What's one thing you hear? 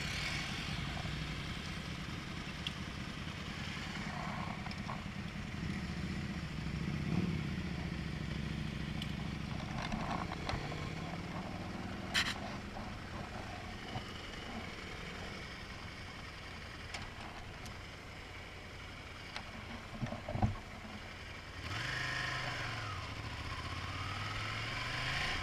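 A motorcycle engine hums steadily and revs up and down close by.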